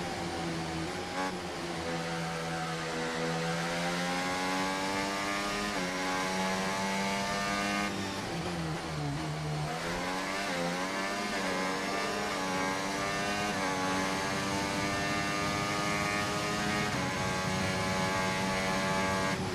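A racing car engine whines loudly and steadily, its pitch climbing through the gears.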